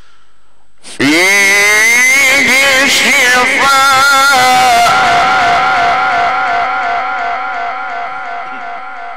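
A man chants loudly in a long, wavering melody through a microphone and loudspeakers.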